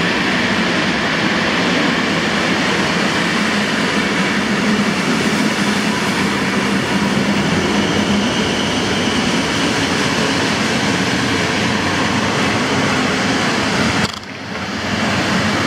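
A passenger train rushes past close by with a loud, steady roar.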